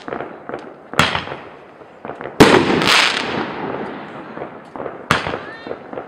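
Fireworks shots bang loudly one after another.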